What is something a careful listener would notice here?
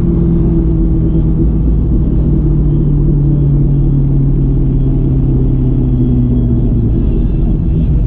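A car engine revs, its pitch falling as it shifts.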